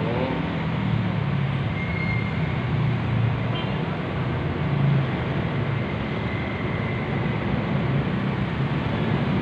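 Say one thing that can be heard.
A heavy truck engine rumbles past.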